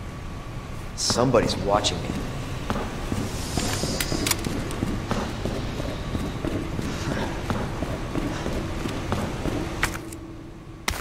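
Footsteps thud on a metal floor.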